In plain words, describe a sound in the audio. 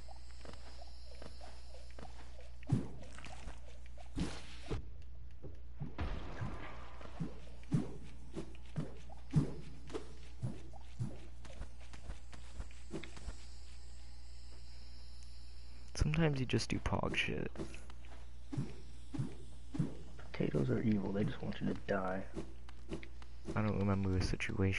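Soft game sound effects thud and tap as a small figure runs and jumps.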